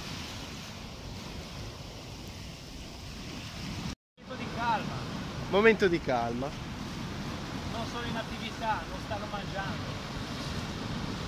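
Waves wash and splash against rocks.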